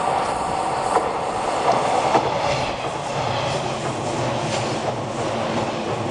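A train rolls past close by, its wheels clattering over the rail joints.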